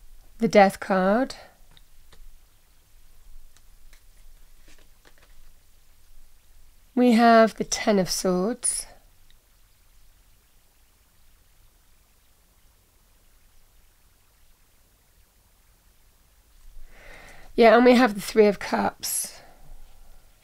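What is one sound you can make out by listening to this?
Playing cards rustle and are laid softly onto a table.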